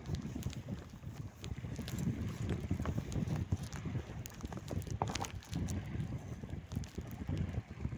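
Wind gusts and rumbles against the microphone outdoors.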